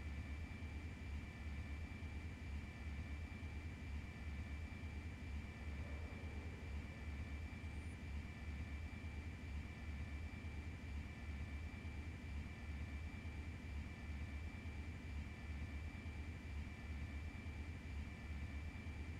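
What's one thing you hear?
A hovering aircraft's engine hums steadily.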